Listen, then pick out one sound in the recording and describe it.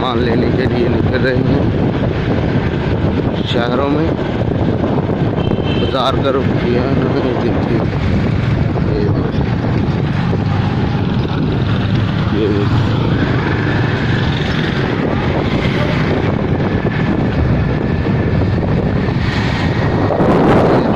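A motorcycle engine runs steadily up close.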